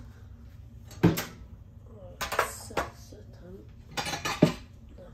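Metal tongs clack against a countertop.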